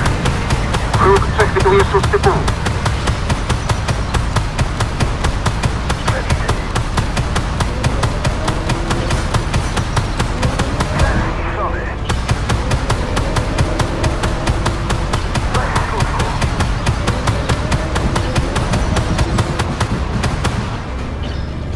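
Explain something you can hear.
A rapid-fire cannon fires in fast, steady bursts.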